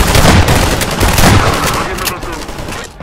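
A gun fires several rapid shots.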